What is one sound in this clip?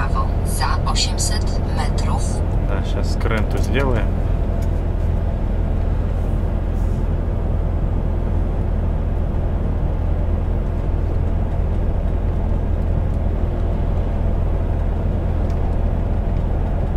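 Tyres hum steadily on the road.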